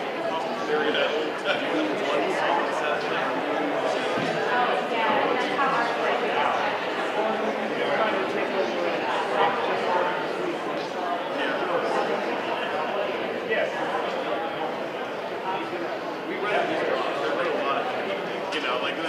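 An audience of many men and women chatters in a large hall.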